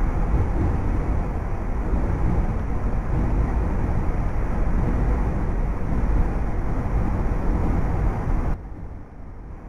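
A train rumbles loudly along the tracks, heard from inside a carriage.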